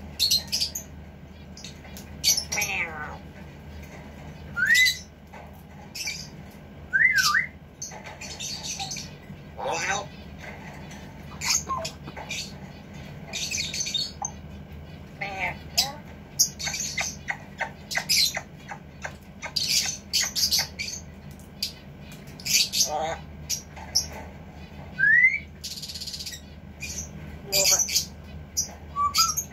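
A parrot's claws and beak clatter against a wire cage.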